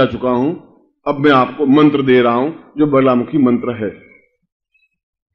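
A middle-aged man speaks forcefully into a microphone, heard through a loudspeaker.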